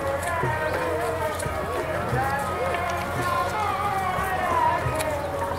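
A crowd of men and women chant together nearby.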